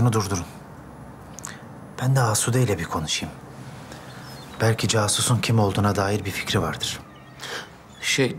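An older man speaks calmly, close by.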